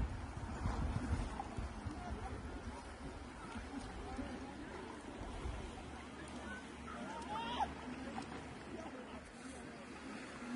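Distant people chatter and call out on a beach.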